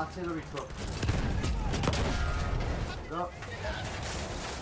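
A loud explosion booms nearby.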